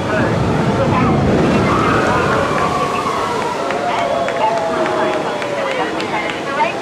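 Children squeal and shout excitedly.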